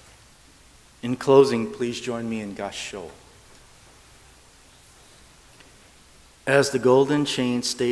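An elderly man chants in a low, steady voice, in phrases with pauses between them.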